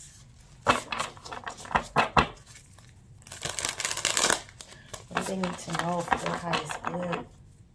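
A deck of cards is shuffled with a quick riffling flutter.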